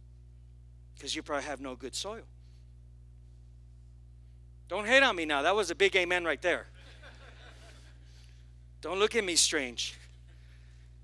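A man speaks with animation through a microphone in a large hall, in short bursts with pauses.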